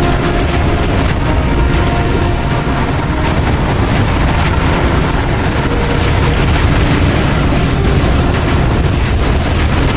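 Cannons boom.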